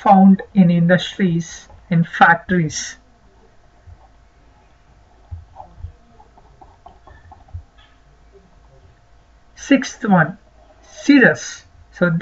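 A man speaks calmly and clearly into a close microphone, with pauses.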